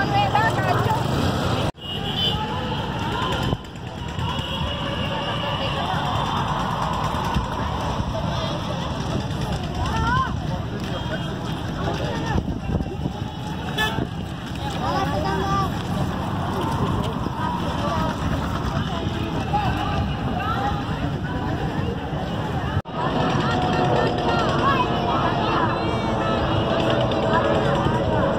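A crowd of women chatter and call out close by, outdoors.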